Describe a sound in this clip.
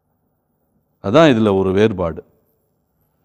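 A younger man speaks calmly into a microphone.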